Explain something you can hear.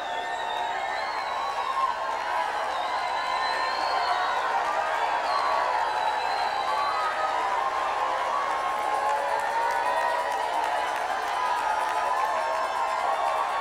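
A man sings through a microphone.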